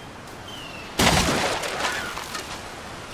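A wooden boat smashes with a loud crash and a splash of water.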